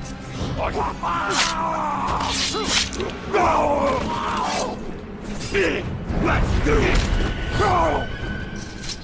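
Blades slash and strike with sharp metallic hits.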